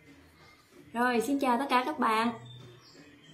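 A young woman speaks brightly and close by.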